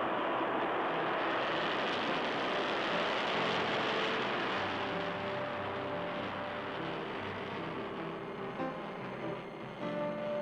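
A rocket engine roars loudly as it lifts off.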